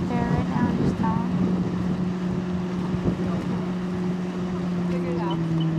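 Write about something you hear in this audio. Water laps and splashes gently around a person floating with a board.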